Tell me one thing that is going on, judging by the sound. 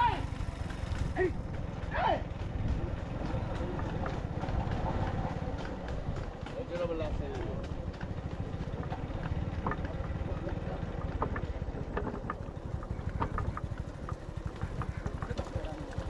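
A wooden cart rattles and creaks along a rough road.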